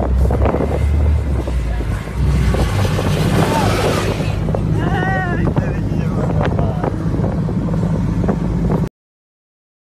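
An off-road buggy engine roars and rumbles as it drives over sand.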